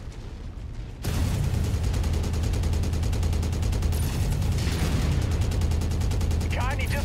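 Heavy guns fire in a rapid, steady stream of booming shots.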